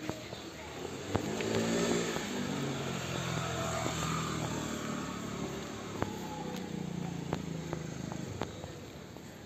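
A motor scooter drives past nearby.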